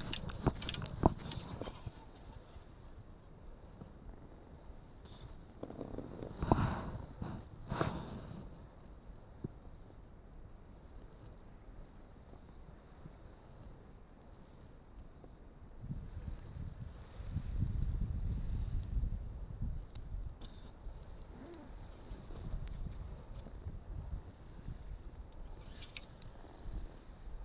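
Wind blusters outdoors across the microphone.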